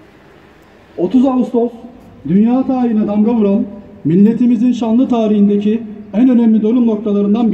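A crowd of men sings together outdoors, loud and close.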